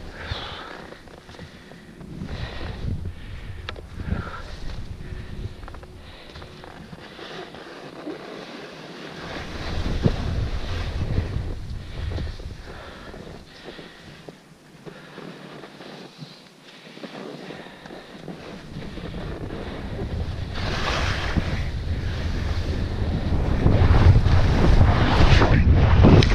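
Skis hiss and scrape over snow.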